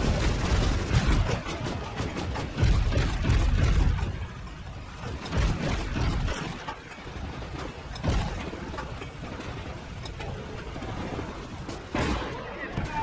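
Tank guns fire with loud booms.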